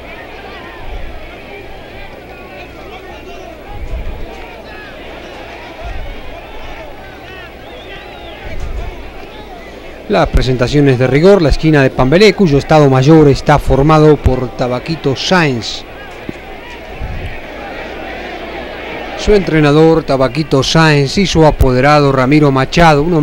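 A large crowd murmurs and chatters in a big open arena.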